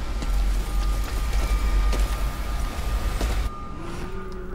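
Loud explosions roar and rumble.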